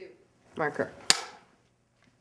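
A clapperboard snaps shut with a sharp clack.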